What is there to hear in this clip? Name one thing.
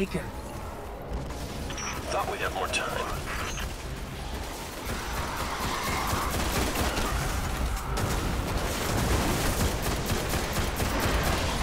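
A rifle fires sharp shots in bursts.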